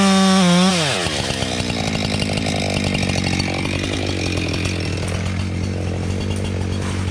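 A chainsaw drops to a rattling idle.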